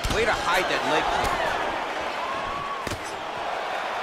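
A kick lands on a body with a dull thud.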